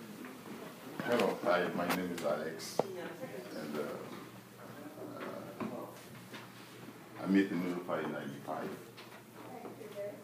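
A man speaks calmly to a small group.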